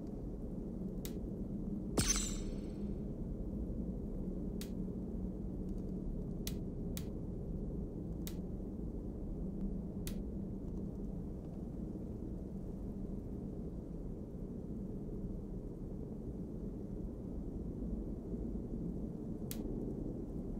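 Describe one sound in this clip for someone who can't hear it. Menu clicks tick softly now and then.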